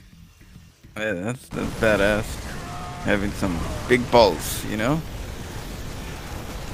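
Futuristic weapons fire in rapid bursts during a battle.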